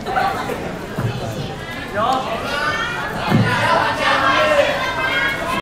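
A crowd of young people chatter loudly in a large echoing hall.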